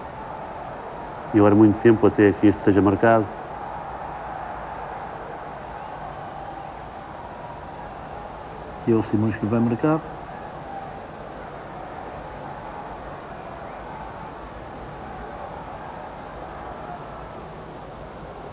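A large stadium crowd murmurs steadily in the distance.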